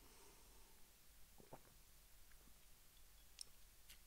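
A man sips a drink.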